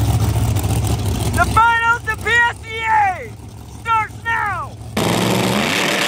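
A drag racing car engine revs loudly in sharp bursts.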